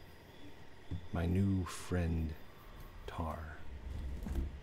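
A man talks casually and close into a microphone.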